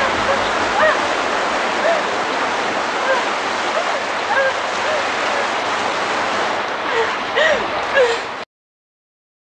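A man shouts and cries out in distress.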